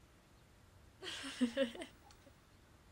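A young woman laughs softly close by.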